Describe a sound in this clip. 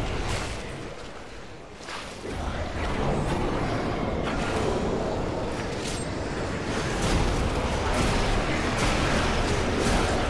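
Magic strikes hit with sharp bursts.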